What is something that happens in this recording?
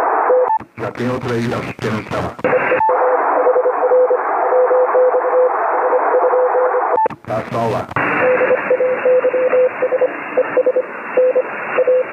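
A radio receiver hisses with static through a small loudspeaker.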